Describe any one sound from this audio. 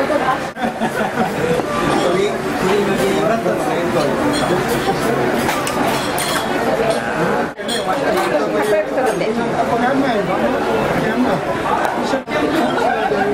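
Batter sizzles on a hot griddle.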